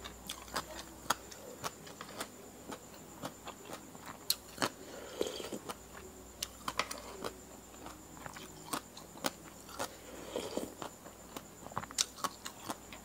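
A spoon scrapes and clinks against a plate.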